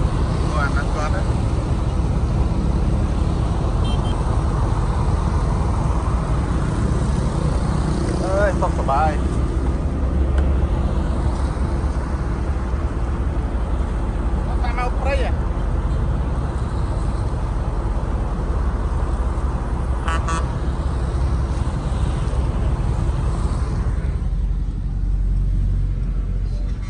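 Outdoors, wind rumbles across the microphone.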